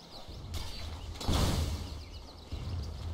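A magical spell bursts with a loud whoosh.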